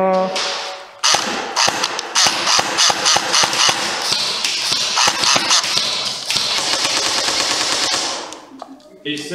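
An airsoft rifle fires rapid bursts in a large echoing room.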